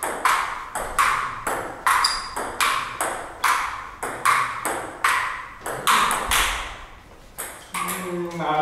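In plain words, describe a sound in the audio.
A ping pong ball clicks back and forth in a quick, steady rally.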